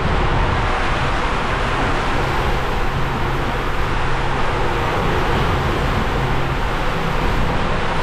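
A body slides and rumbles along a plastic tube.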